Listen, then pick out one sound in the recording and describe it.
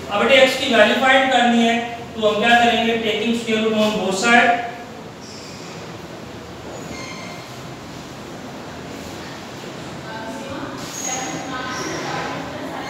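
A man speaks in a lecturing tone.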